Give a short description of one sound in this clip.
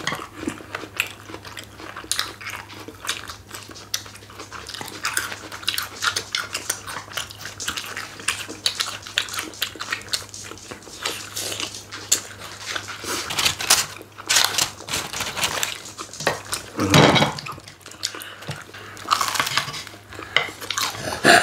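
Chopsticks click against plates and bowls.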